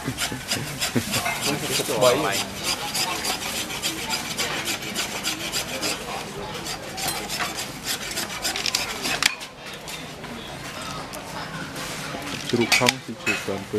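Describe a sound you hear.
A knife chops meat on a board with quick, sharp knocks.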